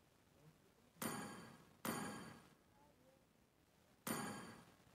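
Short bright chimes ring out three times, each fading away.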